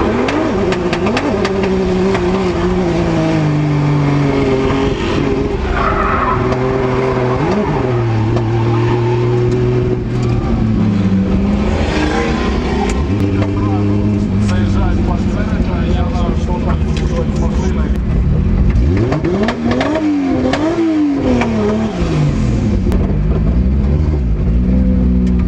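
A racing car engine roars loudly from inside the cabin, revving up and down throughout.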